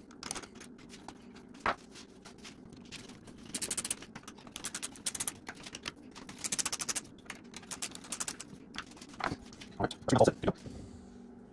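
A hex key clicks and scrapes against metal parts.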